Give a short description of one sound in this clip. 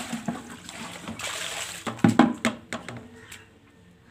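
A plastic bucket knocks on a hard floor.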